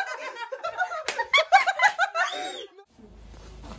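A young man laughs loudly close by.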